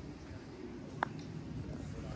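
A putter taps a golf ball with a light click.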